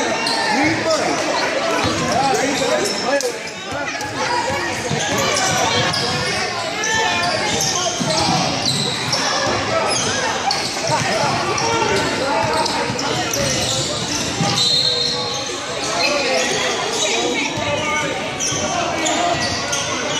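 A crowd of people talks and cheers loudly in a large echoing gym.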